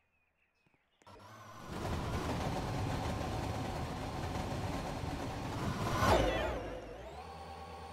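A long freight train rumbles loudly past on the tracks.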